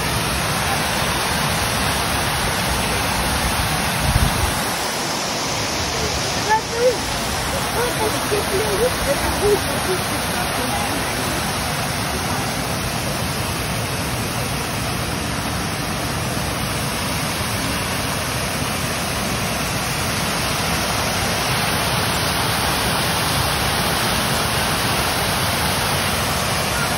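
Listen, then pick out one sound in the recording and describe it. A fountain splashes and hisses steadily outdoors.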